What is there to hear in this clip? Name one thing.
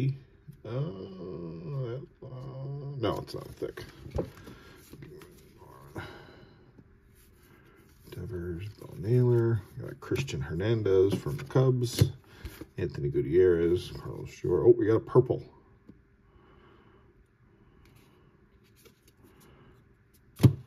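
Trading cards slide and flick against each other as they are sorted.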